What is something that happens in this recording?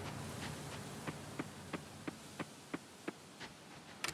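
Light footsteps patter quickly on soft ground.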